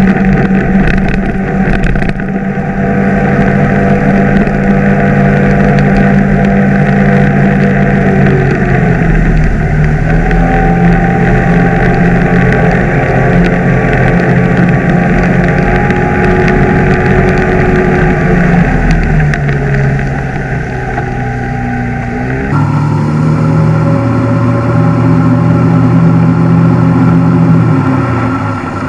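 A small outboard motor drones steadily up close, its pitch shifting now and then.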